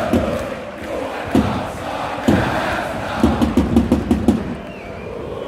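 A crowd claps loudly in unison.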